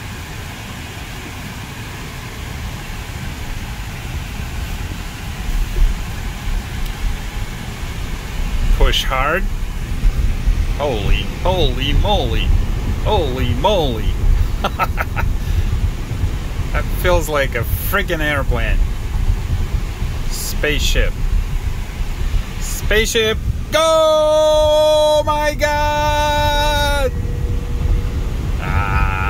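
Tyres hum and rumble steadily on a road from inside a moving car.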